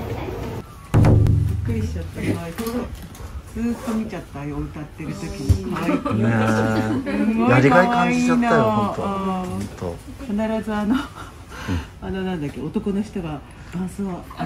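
Several women chat and laugh nearby.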